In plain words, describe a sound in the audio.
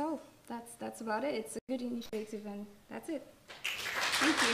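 A young woman speaks cheerfully into a microphone.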